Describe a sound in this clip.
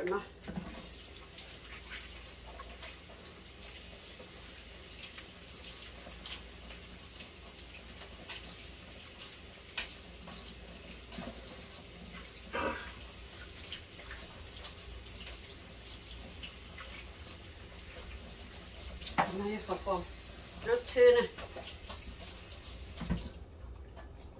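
Water runs from a tap into a sink and then stops.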